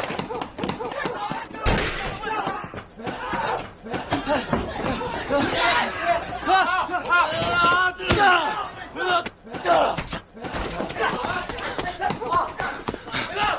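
Footsteps run quickly on pavement.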